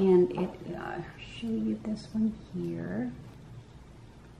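A woman speaks calmly close to the microphone.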